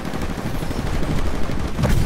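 A large walking robot stomps heavily nearby.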